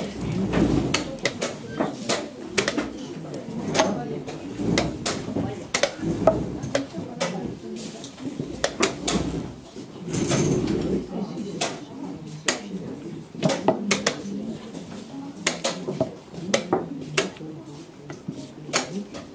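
Wooden chess pieces tap and knock on a board.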